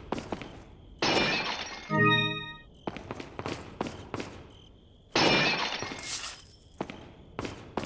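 A stone statue shatters with a loud crash.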